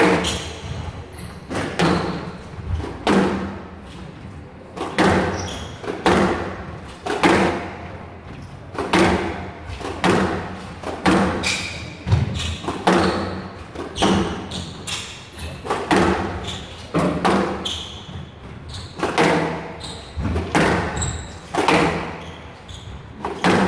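A squash ball smacks sharply against the walls again and again, echoing in a hard-walled court.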